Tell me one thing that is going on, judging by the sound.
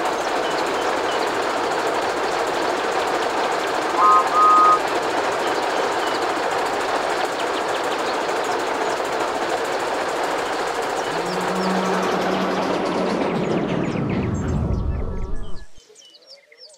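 A steam locomotive chugs and rumbles along the track.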